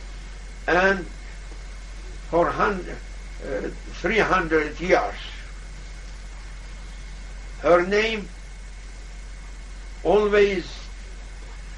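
An elderly man speaks slowly in short phrases with long pauses, close by.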